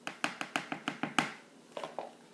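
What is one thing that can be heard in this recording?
A spoon taps against the rim of a plastic bowl.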